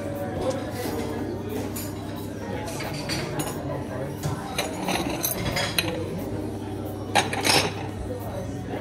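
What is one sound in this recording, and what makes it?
People chatter in a busy room nearby.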